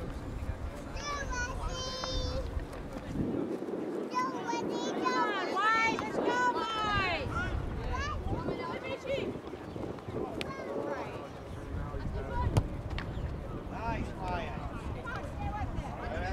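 Young players shout to each other from across a field.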